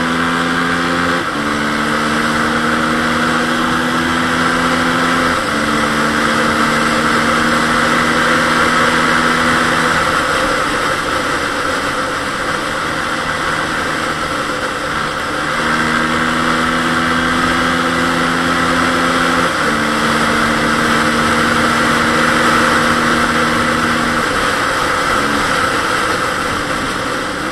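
A motorbike engine drones close by, its pitch stepping up and down through gear changes.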